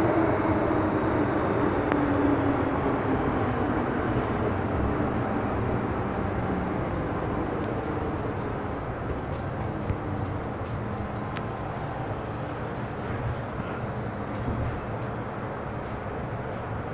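A subway train rumbles and roars along the tracks, slowly growing quieter.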